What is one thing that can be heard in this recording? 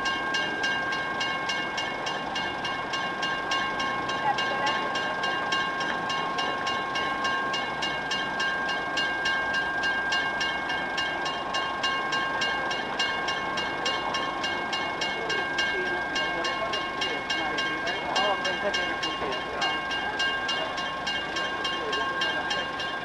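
A railway crossing bell rings steadily and rapidly close by.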